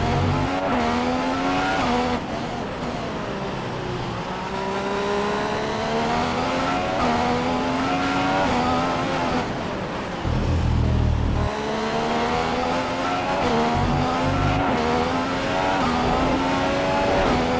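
A Formula One V6 turbo engine revs up and down through gear changes.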